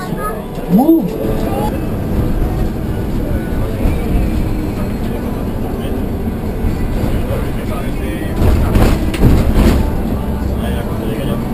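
A bus engine rumbles steadily while driving on a highway.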